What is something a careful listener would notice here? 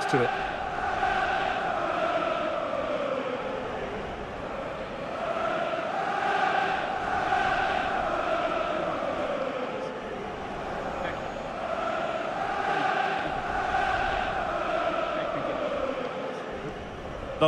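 A large stadium crowd sings and chants in a wide, echoing space.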